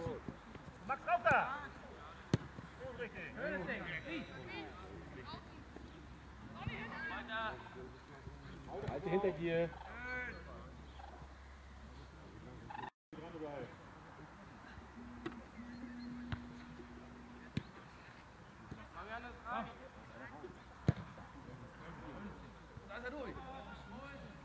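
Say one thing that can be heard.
Young boys shout and call out across an open field.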